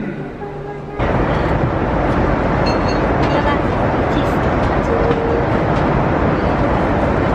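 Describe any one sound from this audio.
A loud, steady roar of jet engines fills an aircraft cabin.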